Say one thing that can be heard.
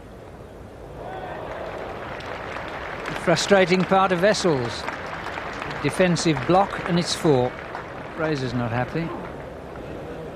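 A crowd murmurs and claps.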